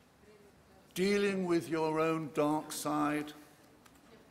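An elderly man speaks expressively into a microphone.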